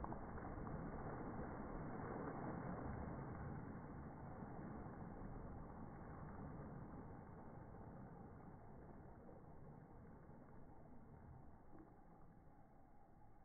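Water sloshes and laps around a float in a pool.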